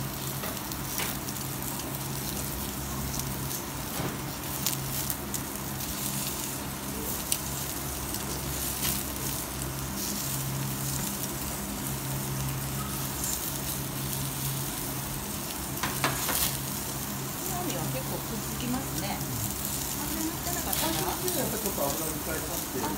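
Meat sizzles steadily on a hot grill.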